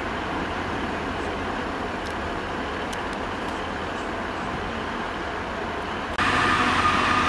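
A train hums softly as it approaches in the distance.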